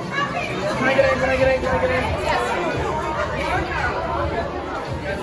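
A group of young women cheer and shout excitedly close by.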